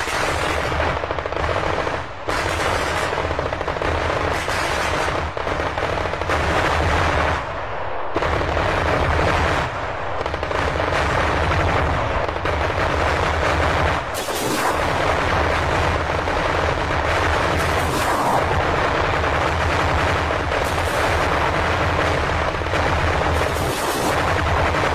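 Anti-aircraft guns fire in rapid, rattling bursts.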